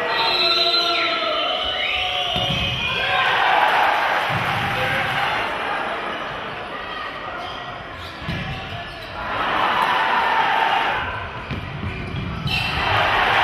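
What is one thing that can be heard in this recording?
A crowd cheers and roars in a large echoing hall.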